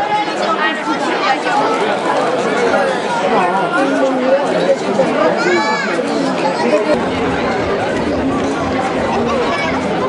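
A crowd of men and women chatters and shouts close by, outdoors.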